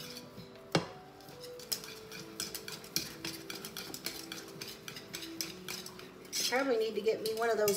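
A whisk scrapes and taps against a metal pot.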